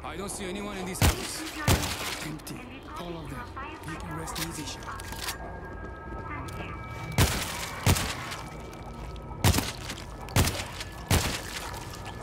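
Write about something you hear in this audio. Loud gunshots ring out in separate bursts.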